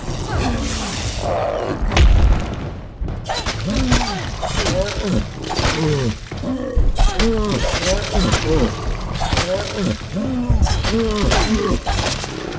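Weapons strike with sharp, heavy hits again and again.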